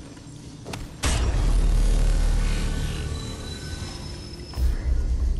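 A deep rumbling whoosh swells suddenly and slowly fades.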